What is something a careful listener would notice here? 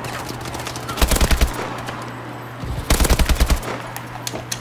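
Rapid bursts of rifle fire ring out.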